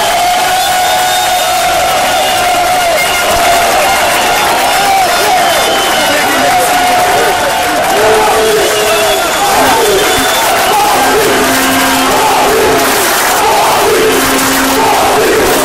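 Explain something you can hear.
A large crowd of men chants and sings loudly nearby.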